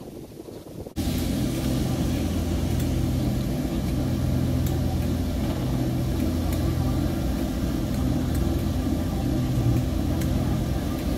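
A diesel locomotive idles with a steady low rumble.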